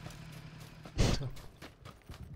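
A single rifle shot cracks loudly.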